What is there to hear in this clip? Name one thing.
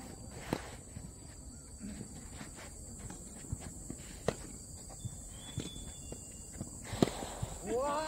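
A tennis ball is struck with a racket outdoors, with sharp pops now and then.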